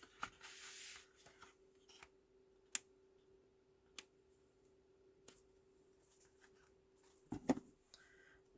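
An acrylic stamp block taps and presses down on paper.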